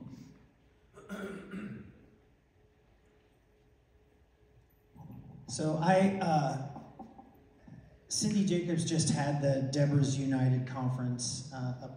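A middle-aged man speaks into a microphone over loudspeakers in a large echoing hall.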